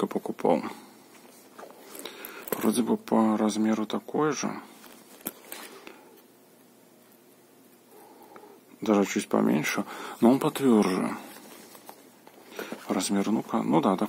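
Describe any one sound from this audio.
Hard zippered cases knock and rub together in someone's hands.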